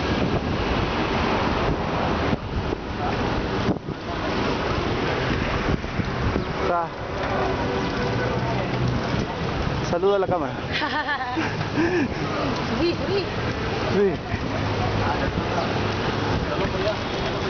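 Bicycle wheels roll and hum on asphalt.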